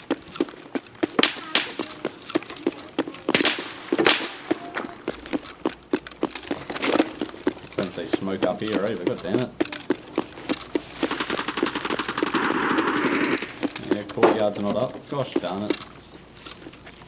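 Quick footsteps crunch on hard ground.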